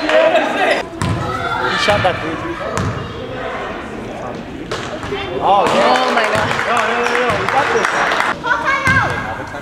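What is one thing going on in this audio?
A basketball bounces with dull thuds on a hard floor.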